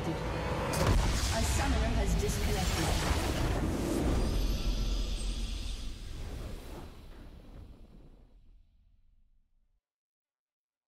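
A triumphant game victory fanfare plays loudly and slowly fades out.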